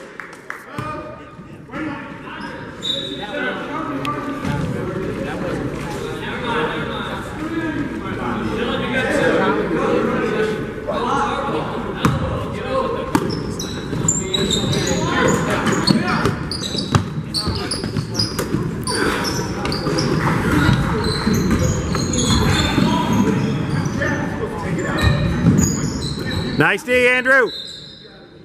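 Young players and spectators call out and chatter throughout the echoing hall.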